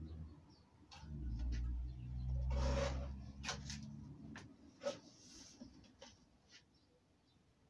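Stiff cards tap and scrape against a wooden board.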